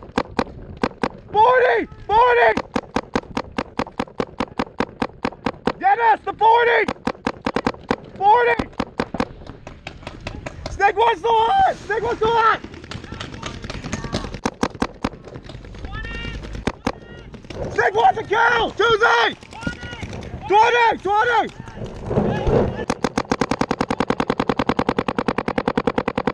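A paintball marker fires rapid shots close by.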